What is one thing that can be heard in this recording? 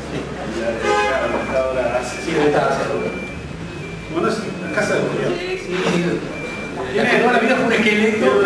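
A second man talks back with animation, close by.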